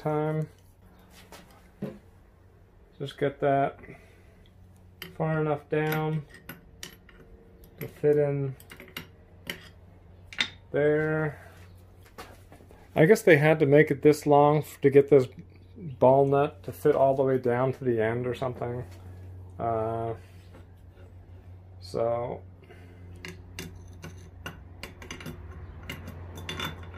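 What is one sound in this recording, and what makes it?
Metal parts click and clink as a threaded rod is turned.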